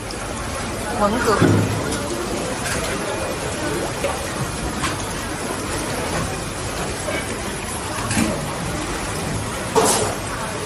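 Metal tongs clack against shellfish shells.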